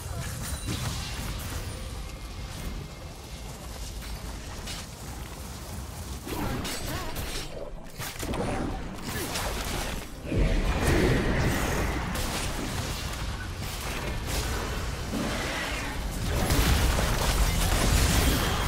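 Video game spells and hits crackle and clash in a battle.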